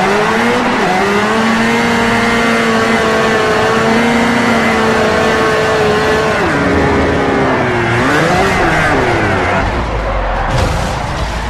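Tyres squeal as a car slides sideways.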